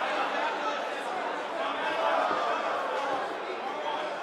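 A large crowd cheers and murmurs in a big arena.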